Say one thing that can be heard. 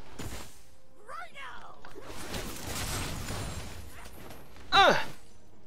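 Game spell effects burst and crackle in quick succession.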